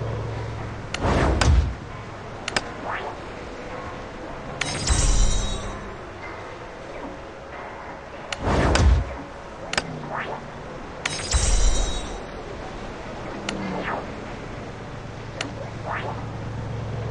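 Short interface clicks and whooshes sound as game menus open and close.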